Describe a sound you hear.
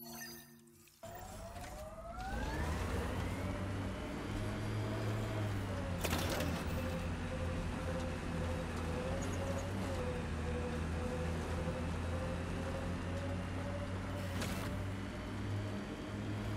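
A vehicle engine revs up and then hums steadily.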